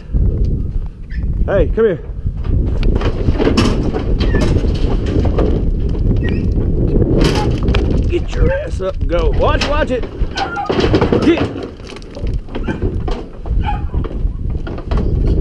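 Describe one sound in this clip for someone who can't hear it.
Hooves clatter and scrape on a metal trailer floor.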